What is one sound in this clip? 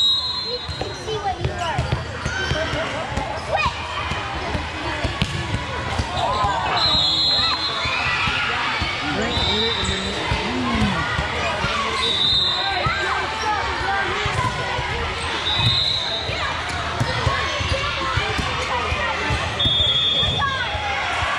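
A referee's whistle blows in short blasts.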